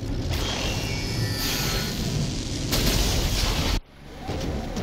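Laser beams blast with a loud roar.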